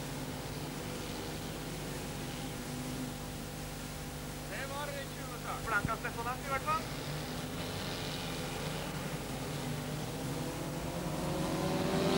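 Car engines idle with a steady low rumble.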